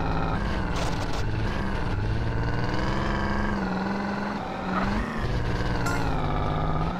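A car engine roars steadily as the car drives along.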